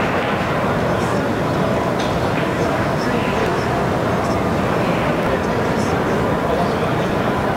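A murmur of many voices fills a large hall.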